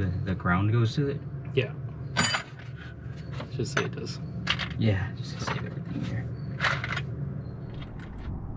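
Parts clatter and rustle as a man rummages through a box.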